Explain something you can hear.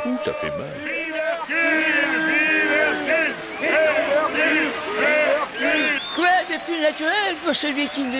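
A man shouts loudly and boastfully.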